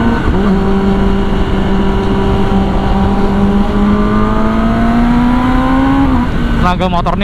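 A motorcycle engine drones steadily at speed, slowly rising in pitch.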